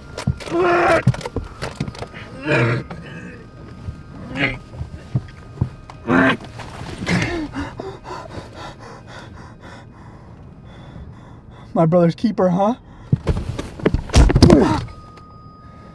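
A young man moans and cries out in distress, close by.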